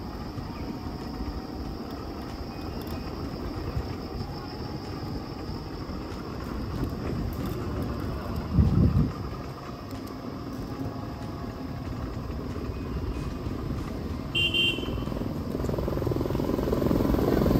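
Wind blows in gusts outdoors.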